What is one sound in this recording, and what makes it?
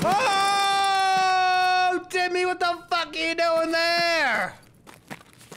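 A man sings loudly into a close microphone.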